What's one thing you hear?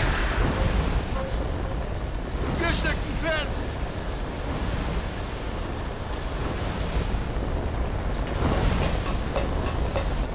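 A heavy machine rumbles and clanks steadily.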